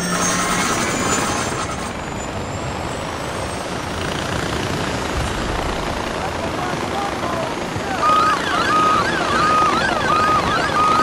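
A pulley whirs steadily along a cable.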